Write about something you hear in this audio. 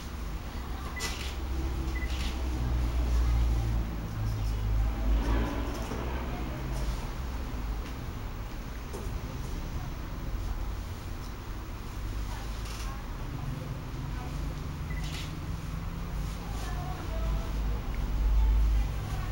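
Scissors snip through hair.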